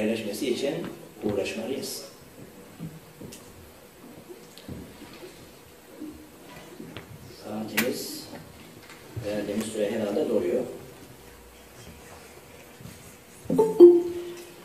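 A man speaks calmly into a microphone, heard through loudspeakers in a hall.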